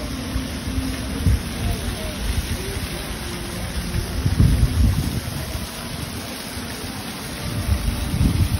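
A fountain splashes steadily in the distance.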